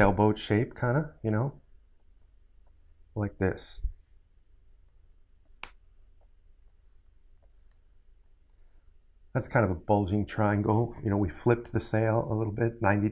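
A middle-aged man talks calmly and explains, heard close through a microphone.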